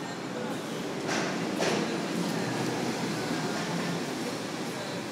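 A bus rumbles past close by.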